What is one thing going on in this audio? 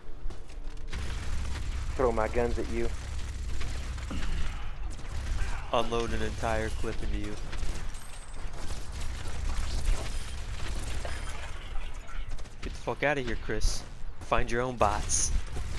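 A heavy gun fires in rapid, rattling bursts.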